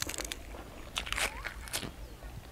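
A man bites and crunches a raw cucumber.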